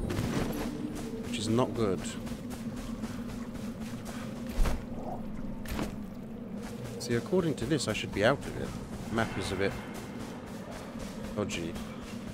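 Water swishes softly as a diver swims underwater.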